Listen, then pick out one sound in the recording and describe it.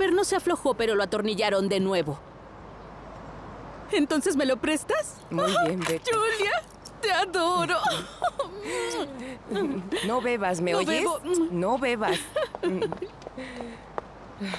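A young woman talks animatedly nearby.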